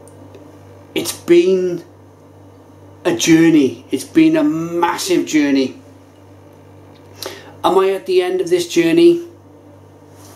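A man speaks calmly and close up, in short bursts.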